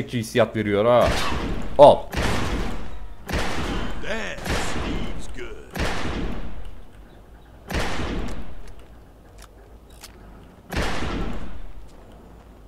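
Gunshots ring out one after another, each echoing away.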